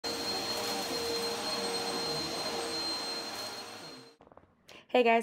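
A vacuum cleaner runs with a steady whirring hum.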